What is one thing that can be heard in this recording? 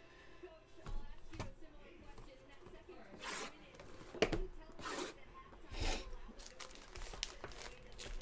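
Plastic wrap crinkles as hands handle a box.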